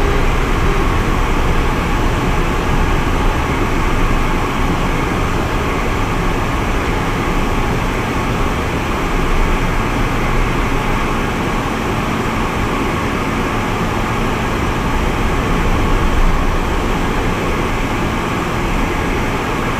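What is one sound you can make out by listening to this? Wind rushes loudly past the plane.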